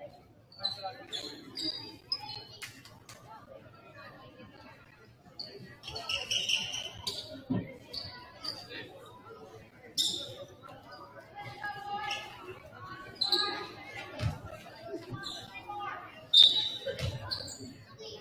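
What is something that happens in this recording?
Basketball shoes squeak sharply on a hardwood court.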